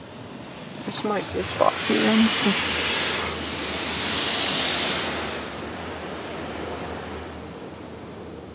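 Car wash machinery hums low and steadily.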